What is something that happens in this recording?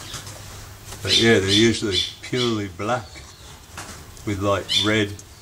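A young bird calls loudly in short bursts.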